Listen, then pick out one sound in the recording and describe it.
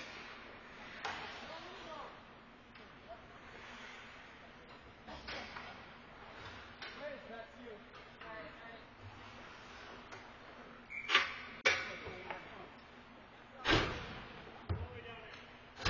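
Hockey sticks clack sharply against the puck and the ice.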